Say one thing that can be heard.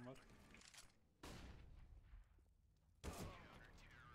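A rifle fires sharp shots close by.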